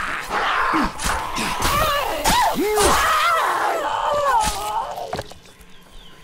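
A blade hacks and thuds into flesh again and again.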